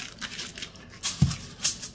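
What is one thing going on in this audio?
Hands smooth aluminium foil flat with a soft rustle.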